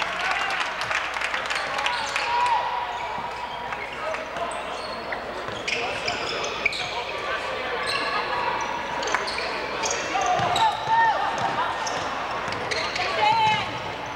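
A crowd of spectators murmurs and cheers in a large echoing gym.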